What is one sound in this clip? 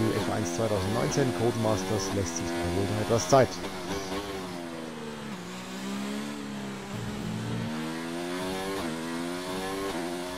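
A racing car engine whines loudly, its pitch rising and dropping as it speeds up and brakes.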